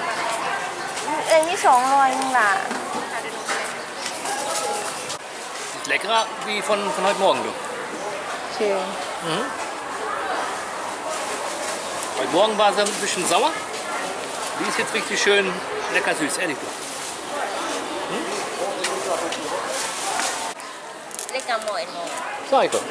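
A market crowd murmurs in the background.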